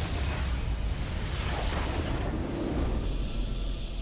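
A large crystal structure explodes with a deep rumbling crash.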